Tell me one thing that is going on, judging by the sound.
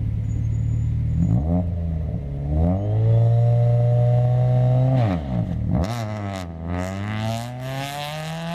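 A car engine revs sharply up and down as the car pulls away.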